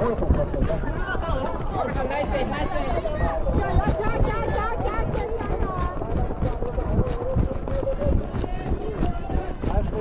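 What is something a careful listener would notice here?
People at the trackside call out and cheer.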